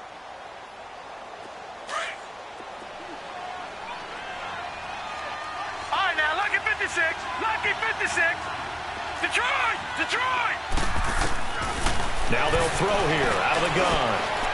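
A large stadium crowd roars, growing louder.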